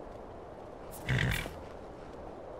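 A horse snorts.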